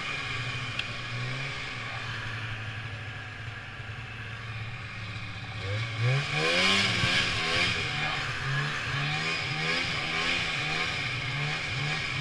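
A snowmobile engine drones steadily close by.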